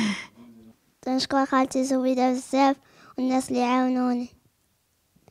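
A young girl speaks into a microphone close by, in a high, sing-song voice.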